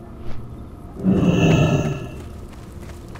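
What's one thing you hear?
A heavy creature lands with a loud whoosh.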